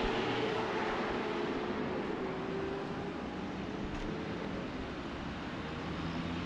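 Traffic rumbles steadily along a road nearby.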